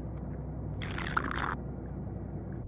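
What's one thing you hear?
A young woman slurps a drink through a straw.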